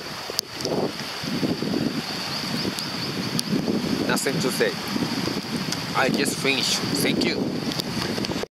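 Water rushes and churns over rocks close by.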